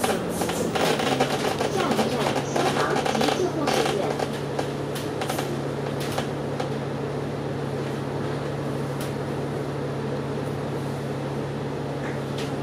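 A bus engine idles steadily.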